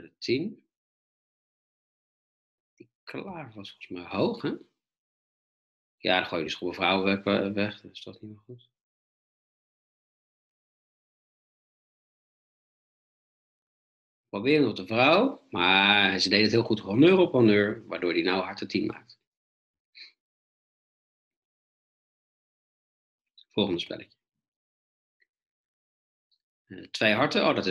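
A man talks calmly into a close microphone, in bursts with pauses.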